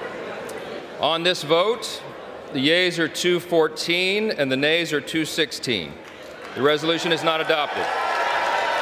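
A man speaks into a microphone in a large echoing chamber.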